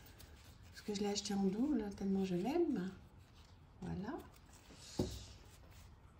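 Playing cards rustle and slap as a deck is shuffled by hand.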